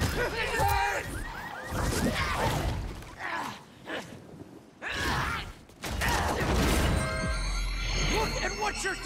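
A monster screeches and snarls.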